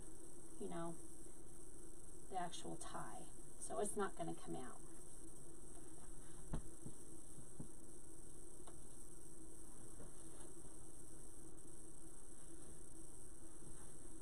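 Ribbon and mesh rustle as a wreath is adjusted.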